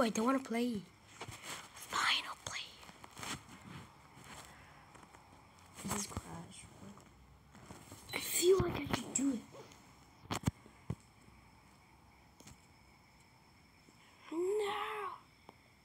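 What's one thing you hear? A boy talks close to a microphone with animation.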